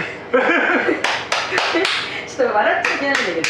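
An older man claps his hands.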